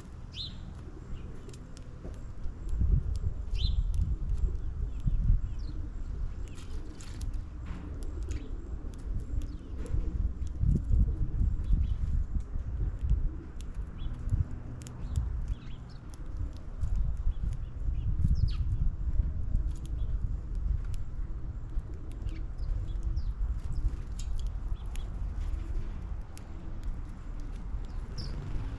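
Small birds peck at scattered seed with light, quick clicks.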